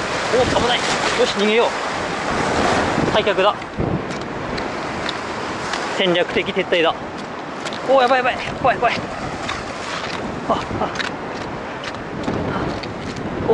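Waves crash and splash against rocks.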